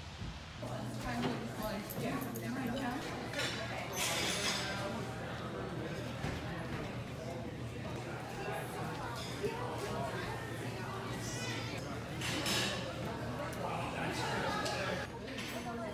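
Many people chatter in a large, echoing room.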